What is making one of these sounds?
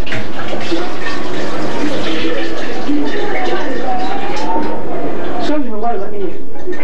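A woman talks nearby.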